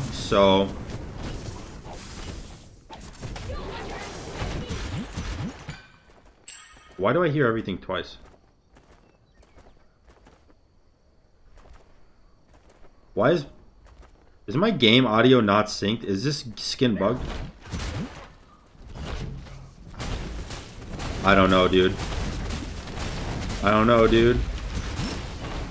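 Game sound effects whoosh and crackle.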